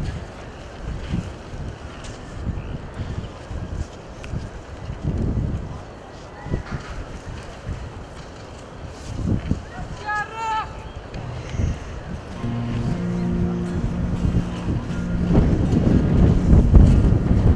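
Leaves rustle as plants are picked by hand.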